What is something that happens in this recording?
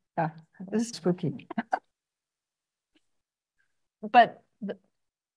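An older woman speaks calmly and close to a microphone.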